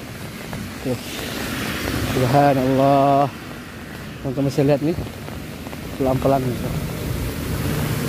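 Heavy rain pours down steadily onto a flooded street outdoors.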